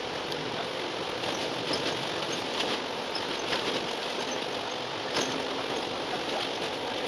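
A bus engine hums steadily while driving along a road.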